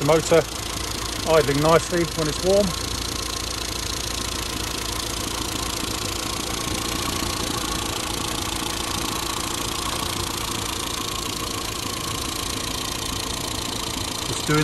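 A small petrol engine idles steadily close by.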